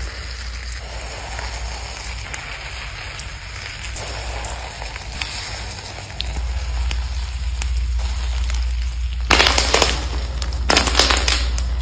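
Hands squeeze and knead a crumbly foam dough, which crackles and crunches.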